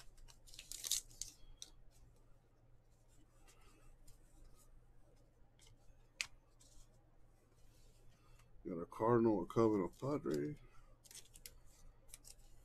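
Cards flick and slide against each other.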